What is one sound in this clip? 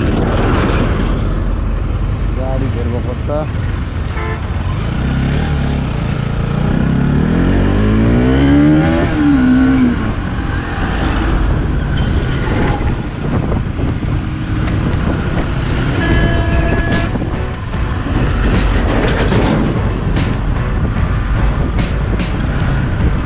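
A motorcycle engine hums steadily and revs up and down.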